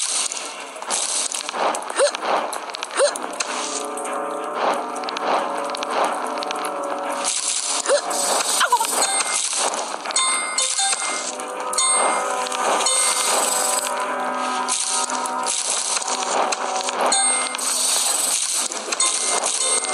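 Short game sound effects chime and pop now and then.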